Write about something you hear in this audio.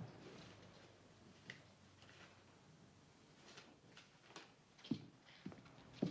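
A sheet of paper rustles and crinkles.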